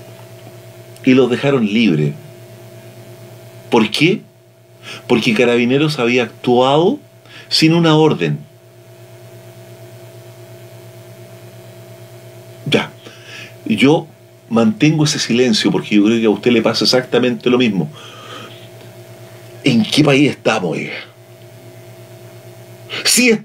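An elderly man speaks with animation into a close microphone, pausing now and then.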